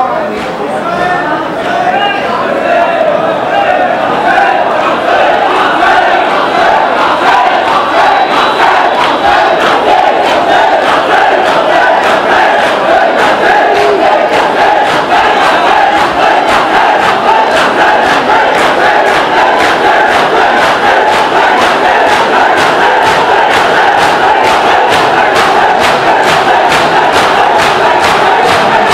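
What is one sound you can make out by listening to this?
A large crowd of men chants loudly in unison.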